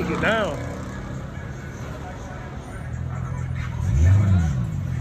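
A car engine idles nearby with a low, steady rumble.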